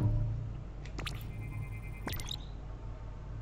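An electronic scanner beeps in short tones.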